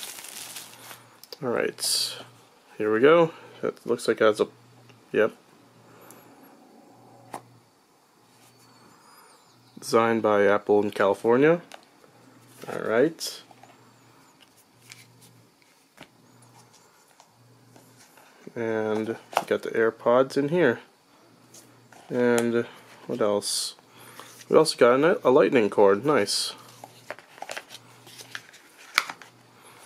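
Cardboard packaging rustles and scrapes as hands handle it.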